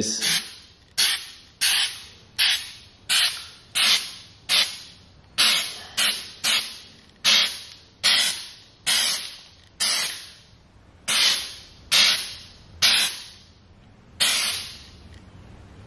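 A spray can hisses in short, repeated bursts.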